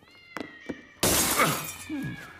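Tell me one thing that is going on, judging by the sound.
Glass shatters loudly.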